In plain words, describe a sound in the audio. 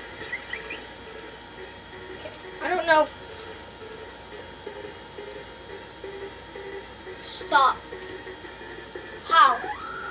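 Video game music plays softly from a television speaker.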